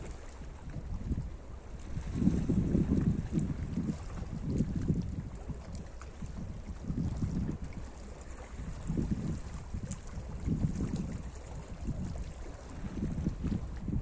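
Small waves lap and splash gently against rocks.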